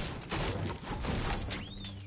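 A pickaxe strikes a wall with sharp, repeated hits.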